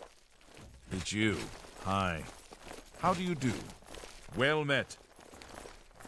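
A man speaks calmly in a game character's voice.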